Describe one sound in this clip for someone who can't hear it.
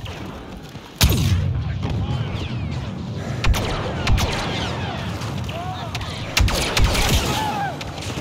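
Laser guns fire in sharp, loud blasts.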